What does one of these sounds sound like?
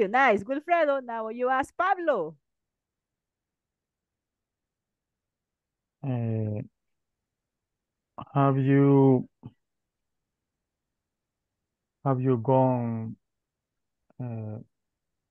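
A woman speaks calmly over an online call, in short bursts.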